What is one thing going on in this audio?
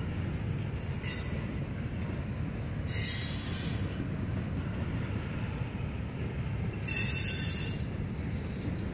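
Train wheels squeal sharply on the rails in short bursts.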